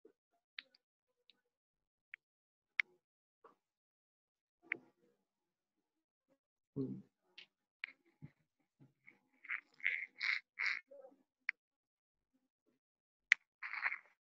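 Small metal pins click and tap against a hard surface.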